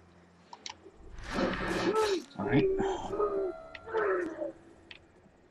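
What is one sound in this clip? A man grunts loudly in a struggle.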